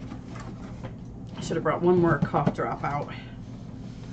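Cardboard rustles.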